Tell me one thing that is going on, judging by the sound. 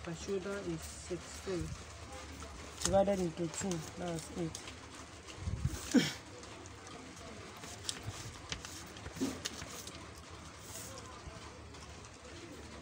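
Stiff paper rustles softly under hands.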